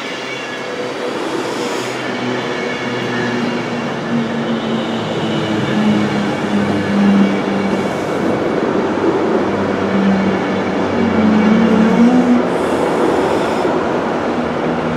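A passenger train rumbles past close by, its wheels clattering on the rails.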